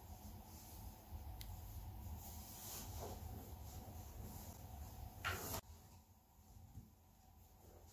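A speaker box rubs and thumps softly on a fabric cushion.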